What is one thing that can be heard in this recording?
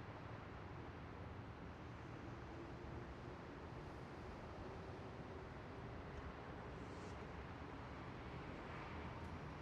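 A bus engine hums steadily as the bus drives slowly.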